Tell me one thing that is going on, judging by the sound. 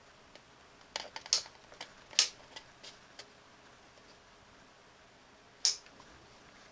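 A plastic button clicks several times.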